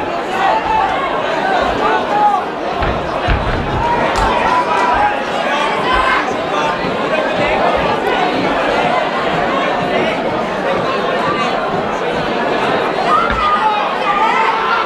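Bodies thud against a mat as two fighters grapple.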